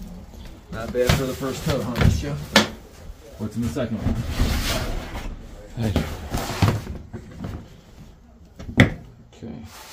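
A plastic storage bin lid knocks and scrapes as bins are moved.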